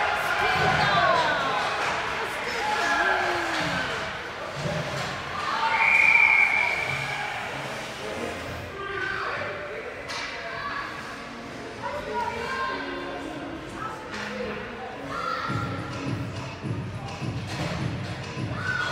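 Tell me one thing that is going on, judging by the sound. Hockey sticks knock against the ice and a puck.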